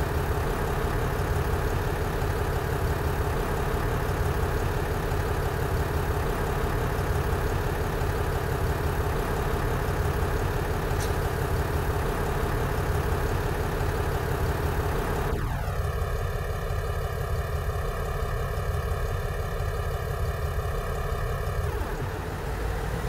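A diesel train engine idles with a steady low rumble.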